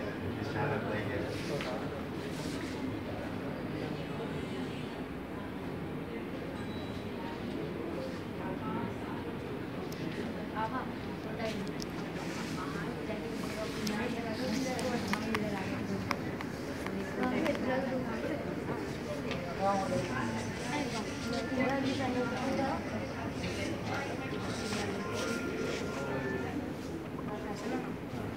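Young boys and men chatter and talk nearby in a room with a slight echo.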